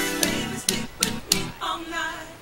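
Buttons on a game controller click.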